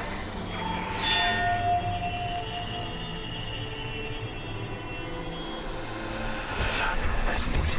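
A metal blade rings briefly.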